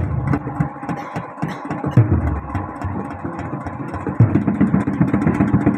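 A large hand drum beats a quick, lively rhythm close by.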